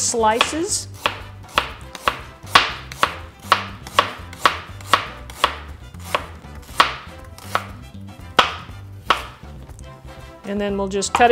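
A knife chops through something firm on a cutting board with quick, sharp knocks.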